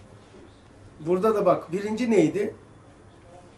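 An elderly man reads aloud calmly, close to a microphone.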